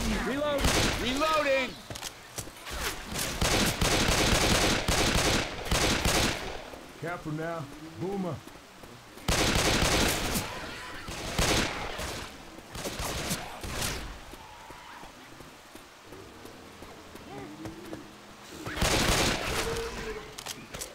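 Pistol shots ring out sharply, one after another.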